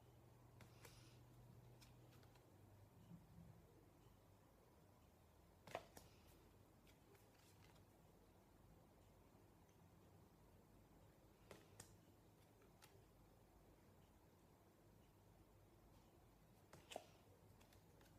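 A young man shuffles and handles stiff cards, which snap and rustle.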